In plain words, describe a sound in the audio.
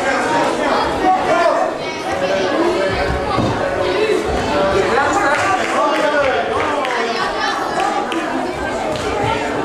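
A crowd of adults and children chatters in an echoing hall.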